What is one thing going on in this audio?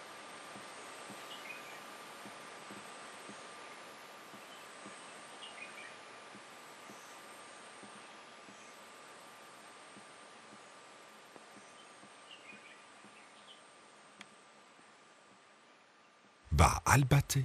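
A small animal rustles through dry leaves.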